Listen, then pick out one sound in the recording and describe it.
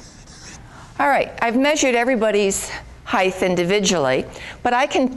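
An older woman speaks with animation in a lively voice.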